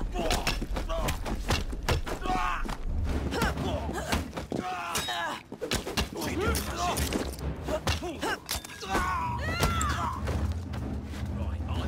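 Punches land with heavy thuds in a fistfight.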